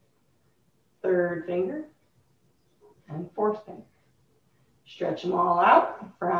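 A woman speaks calmly and clearly at close range.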